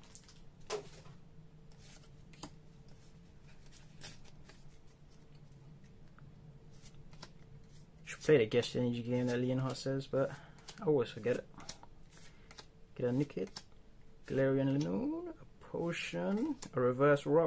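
Playing cards slide and flick against each other.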